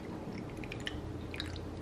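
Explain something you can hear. Liquid pours into a glass over ice.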